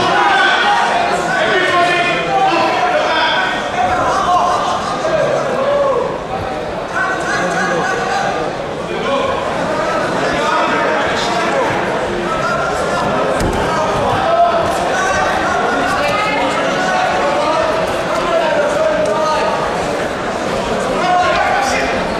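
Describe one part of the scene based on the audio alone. A crowd of men shout and talk loudly in a large echoing hall.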